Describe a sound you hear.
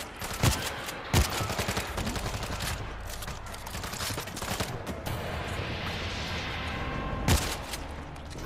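Rifle shots crack loudly in a large echoing hall.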